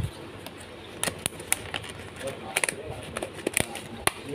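Plastic food containers crinkle and tap as hands handle them.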